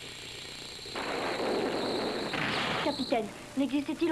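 A loud explosion roars.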